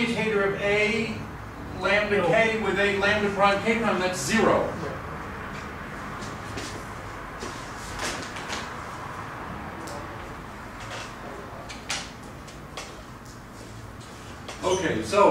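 An elderly man lectures calmly through a microphone in an echoing hall.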